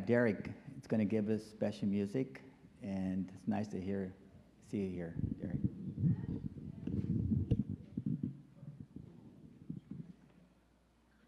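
A man speaks with feeling into a microphone in a large, echoing room.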